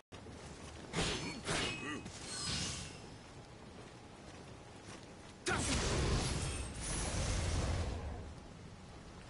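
Metal blades clash and clang in a sword fight.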